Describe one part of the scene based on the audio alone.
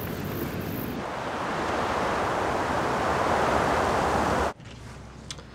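Wind rushes outdoors.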